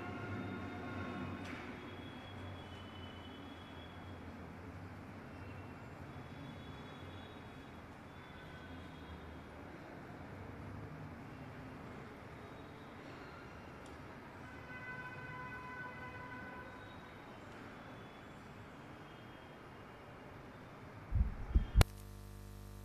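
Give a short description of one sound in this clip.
A group of men and women murmur quietly nearby in an echoing hall.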